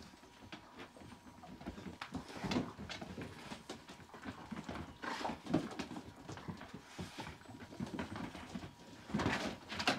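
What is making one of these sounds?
Dog paws scrabble and patter on a wooden floor.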